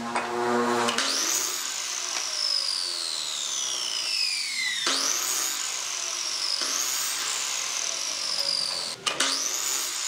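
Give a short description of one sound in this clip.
A miter saw motor spins up with a sudden rising whine.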